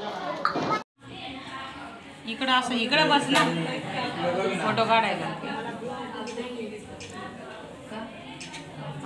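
A woman speaks up close with animation.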